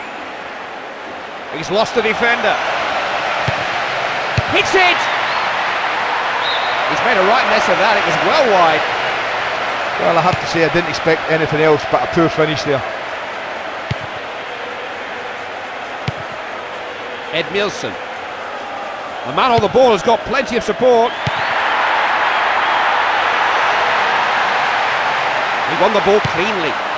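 A large crowd murmurs and roars steadily in a big open stadium.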